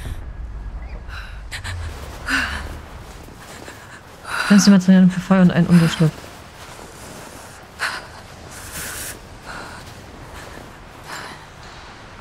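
Wind blows steadily through snowy trees.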